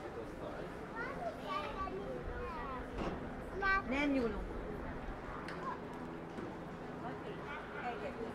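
Young children chatter and call out close by.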